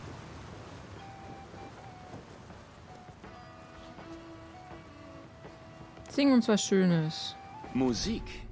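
Musicians play a gentle folk tune on stringed instruments.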